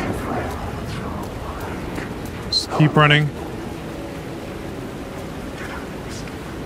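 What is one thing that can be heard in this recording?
Footsteps scuff slowly on a hard, gritty floor.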